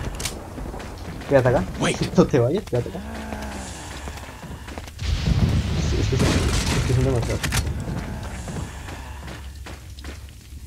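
Footsteps crunch on loose dirt.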